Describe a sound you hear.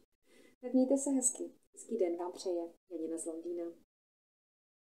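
A woman speaks calmly and warmly, close to the microphone.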